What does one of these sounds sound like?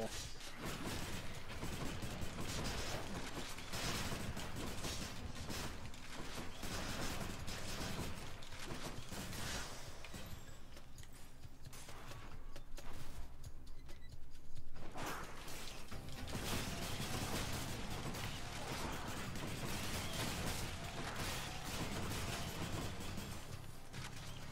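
Blows, slashes and blasts clash rapidly in a game fight.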